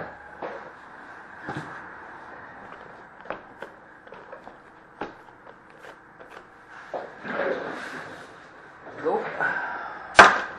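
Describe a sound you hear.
Cardboard boxes knock and slide against each other as they are stacked.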